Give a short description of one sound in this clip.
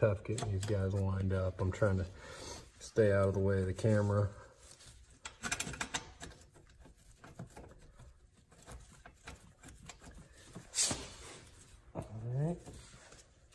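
Metal parts clink and scrape as they are handled.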